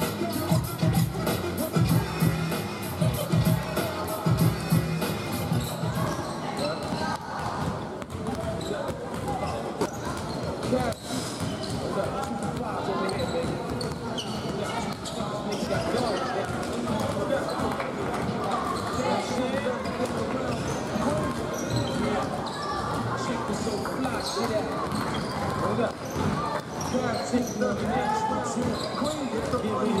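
Basketballs bounce on a wooden court in a large echoing hall.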